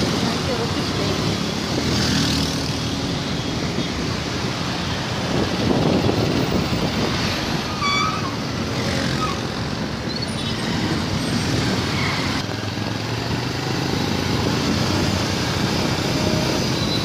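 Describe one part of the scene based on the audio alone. Cars and motorbikes drive past on a road.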